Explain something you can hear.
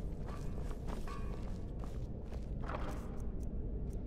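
A wooden chest creaks open.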